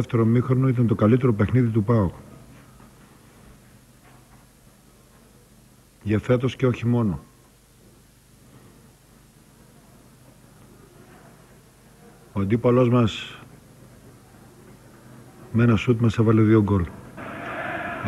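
A man speaks calmly into microphones, with long pauses.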